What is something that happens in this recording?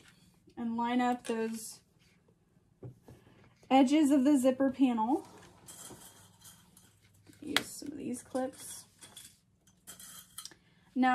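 Fabric rustles softly as hands fold and smooth it.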